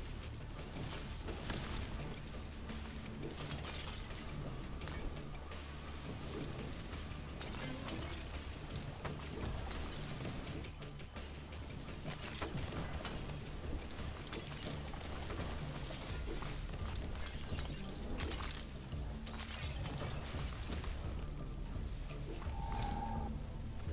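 Weapon strikes and magic blasts thud and crackle during combat.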